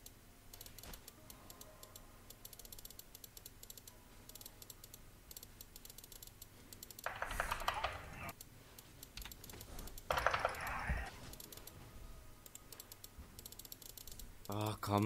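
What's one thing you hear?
Quick light ticking sounds of game attacks repeat rapidly.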